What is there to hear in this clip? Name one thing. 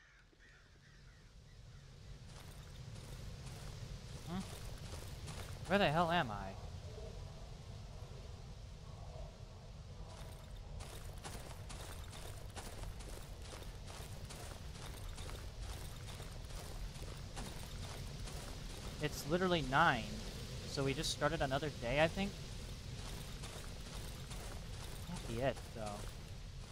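Footsteps shuffle steadily over rough ground.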